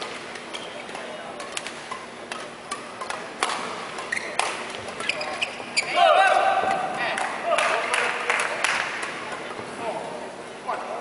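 Rackets strike a shuttlecock with sharp pops in a rally.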